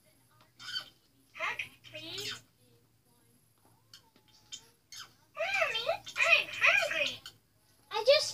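A young girl speaks close by in a high, animated voice.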